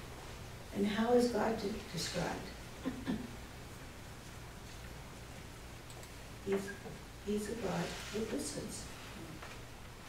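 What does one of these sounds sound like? A middle-aged woman speaks calmly nearby, in short phrases with pauses.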